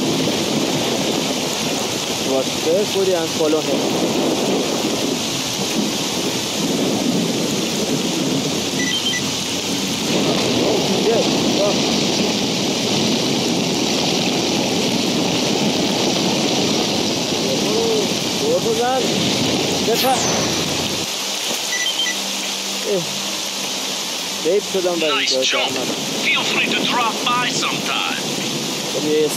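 A young man speaks calmly into a headset microphone, close by.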